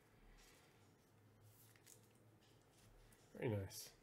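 Stiff cards are handled and set down on a table.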